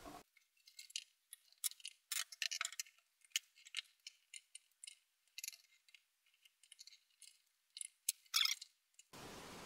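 Plastic parts click and tick as a small tool works on them.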